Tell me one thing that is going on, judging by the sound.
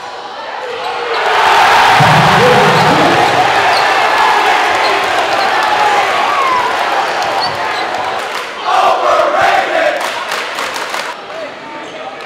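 A large crowd cheers and roars loudly in an echoing gym.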